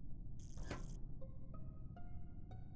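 A game alarm sounds with rising tones.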